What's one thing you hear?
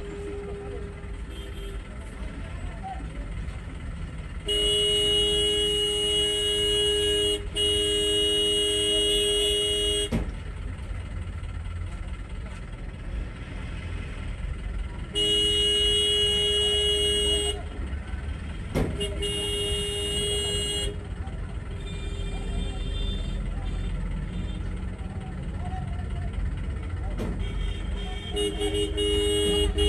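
Traffic engines rumble steadily nearby.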